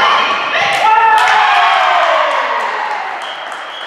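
Young women cheer and shout excitedly in a large echoing hall.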